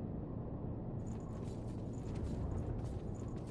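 A heavy blade whooshes through the air.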